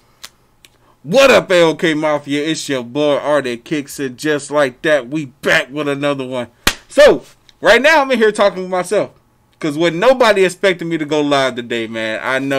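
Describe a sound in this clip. A man speaks with animation, close to the microphone and muffled by a mask.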